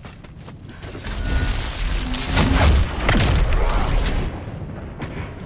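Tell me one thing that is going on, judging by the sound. Fire roars loudly and then dies down.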